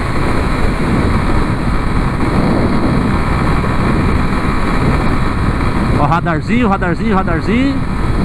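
A motorcycle engine hums steadily at cruising speed.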